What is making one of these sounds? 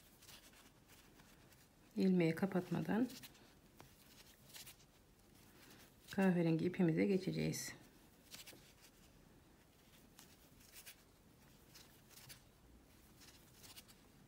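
A crochet hook pulls through yarn with faint soft rustles.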